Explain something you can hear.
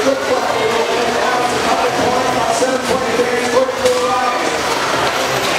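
A large crowd chatters and cheers throughout a big echoing arena.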